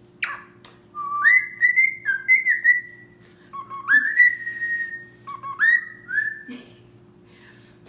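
A cockatiel whistles a rising, repeated tune up close.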